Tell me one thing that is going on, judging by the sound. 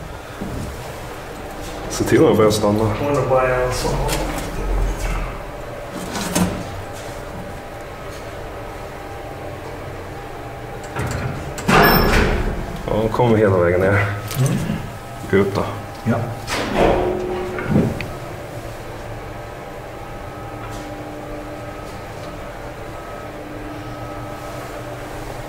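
An elevator's machinery hums steadily.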